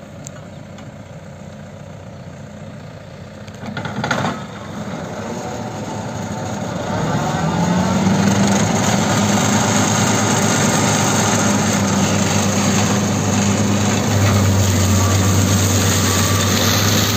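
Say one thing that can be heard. A mulcher's rotor whirs and shreds grass and soil.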